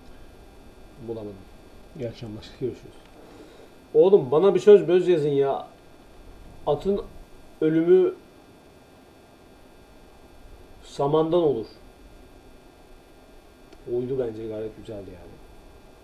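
A young man speaks calmly into a close microphone, in short bursts.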